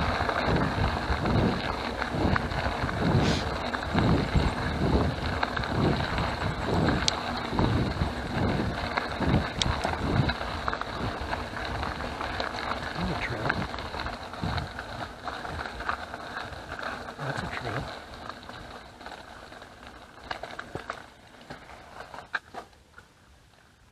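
Bicycle tyres crunch and rumble over a gravel track.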